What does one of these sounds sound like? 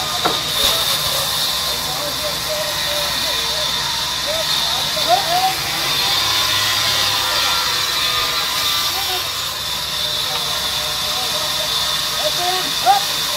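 A band saw whines steadily as it cuts through a large log.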